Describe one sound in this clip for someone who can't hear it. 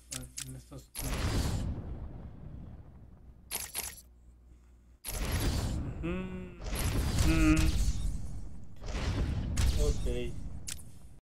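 Swooshing menu sounds play as game pages switch.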